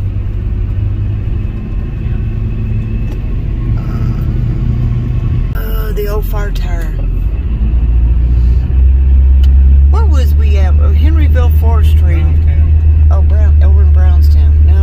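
A car engine rumbles low and steadily while driving.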